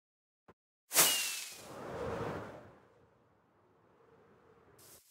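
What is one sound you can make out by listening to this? A firework rocket launches with a sharp whoosh and crackles away.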